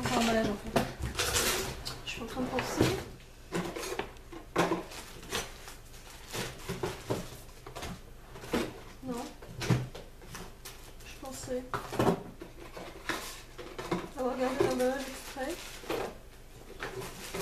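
Objects knock and rustle as a young woman rummages low down.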